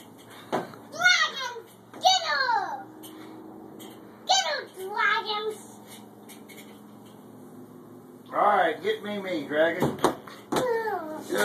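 A little girl squeals and shouts excitedly close by.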